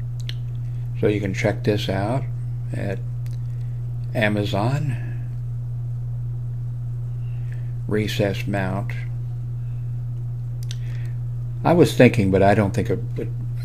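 An elderly man talks calmly into a close microphone, in short bursts with pauses.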